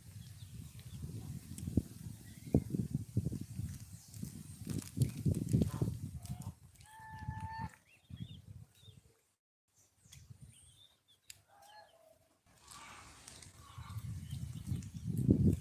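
Goslings peep.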